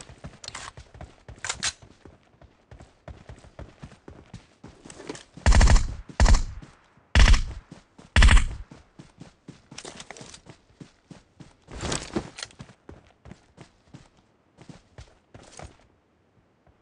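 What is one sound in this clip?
Footsteps crunch quickly over grass and rock.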